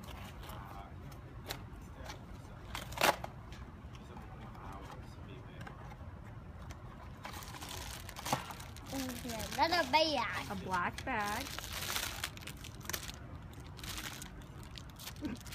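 A cardboard box and plastic wrapping rustle and crinkle as a young boy opens them.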